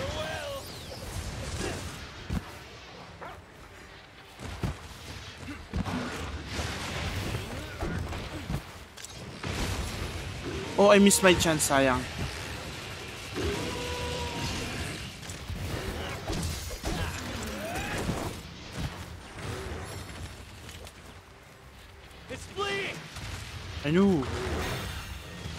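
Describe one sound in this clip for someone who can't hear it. A sword slashes and clangs against a large beast.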